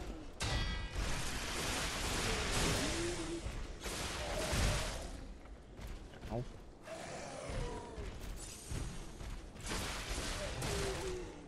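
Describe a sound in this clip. Blades slash and clang in heavy, noisy bursts.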